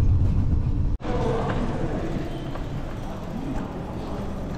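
Bicycle wheels roll over a hard floor.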